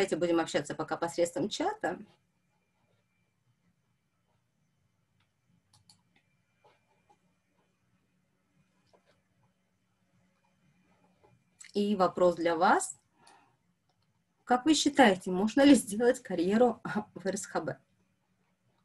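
A young woman speaks calmly over an online call, pausing between phrases.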